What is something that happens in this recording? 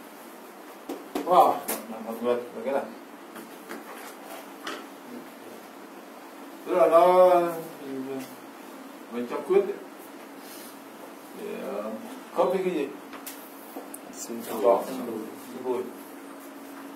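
A man lectures in short bursts, speaking calmly.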